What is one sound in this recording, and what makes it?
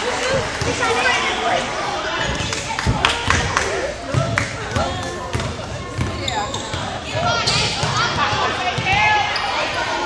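A basketball bounces on a hardwood floor, echoing.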